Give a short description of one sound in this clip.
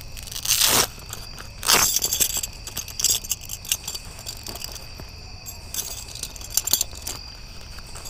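A plastic bag crinkles and rustles close by.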